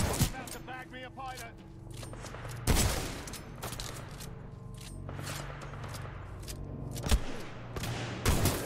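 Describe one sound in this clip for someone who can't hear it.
Loud gunshots from a video game bang in short bursts.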